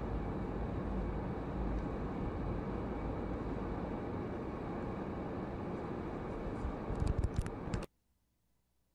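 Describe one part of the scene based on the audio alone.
A car engine rumbles and road noise fills the cabin as the car drives.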